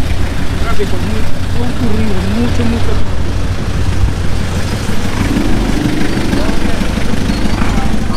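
A truck engine idles nearby.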